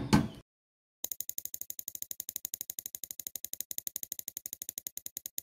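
A prize wheel ticks rapidly as it spins.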